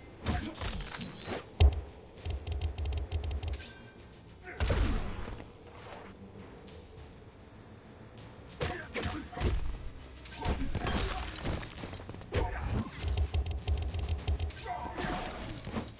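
Punches and kicks land with heavy thuds in a fight.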